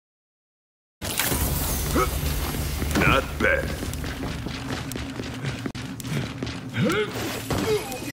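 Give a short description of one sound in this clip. Heavy footsteps thud on stone.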